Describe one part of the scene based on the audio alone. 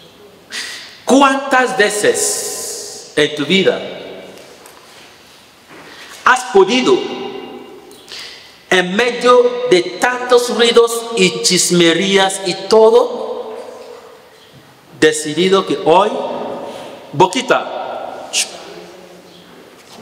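A man speaks with animation through a microphone, echoing in a reverberant room.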